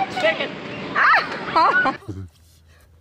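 Children shout excitedly.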